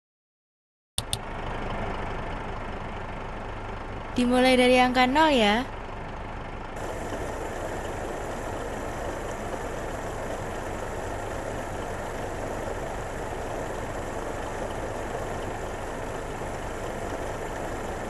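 An engine idles with a steady low rumble.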